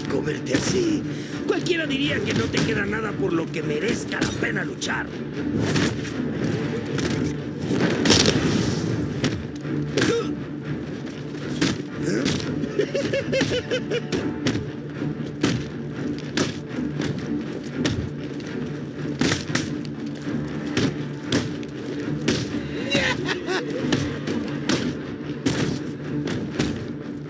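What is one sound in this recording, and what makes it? Punches and kicks land with heavy thuds in a fast brawl.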